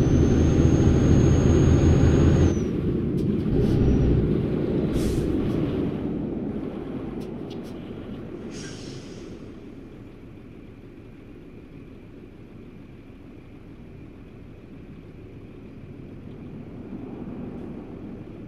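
A truck engine rumbles steadily, slowly quietening as the truck slows down.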